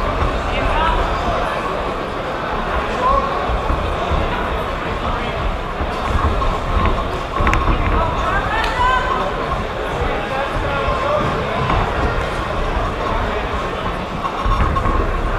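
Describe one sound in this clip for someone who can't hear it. A large crowd chatters and shouts in an echoing hall.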